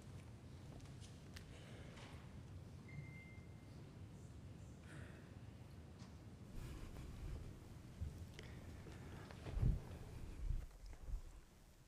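Footsteps thud softly on a carpeted floor.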